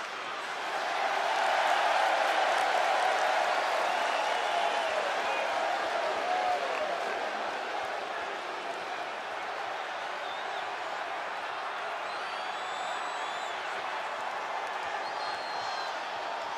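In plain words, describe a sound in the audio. A large crowd cheers and roars in a big echoing arena, swelling early on and then easing slightly.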